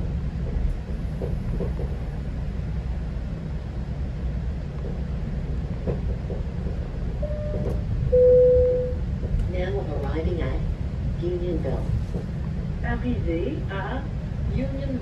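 A vehicle rumbles steadily as it drives along.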